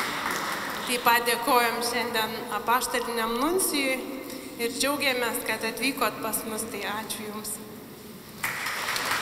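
A woman speaks through a microphone in a large echoing room.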